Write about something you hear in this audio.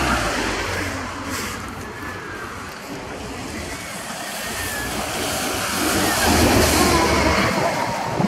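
A bus engine rumbles as the bus approaches and passes.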